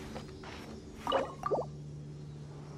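A bright magical chime rings out.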